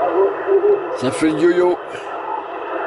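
A radio receiver squeals briefly as it is tuned to another channel.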